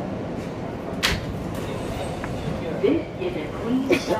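Subway train doors slide open.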